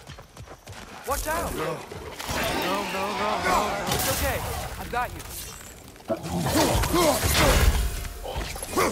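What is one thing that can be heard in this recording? Creatures snarl and growl close by.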